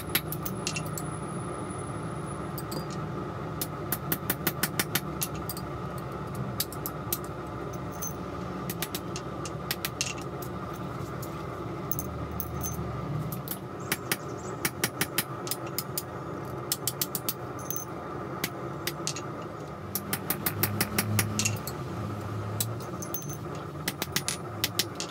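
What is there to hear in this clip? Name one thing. A hammer strikes metal in quick, ringing bursts of blows.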